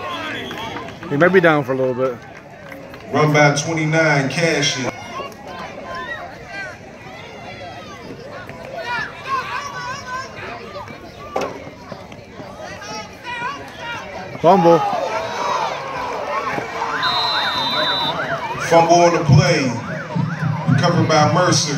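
Spectators outdoors cheer and call out throughout.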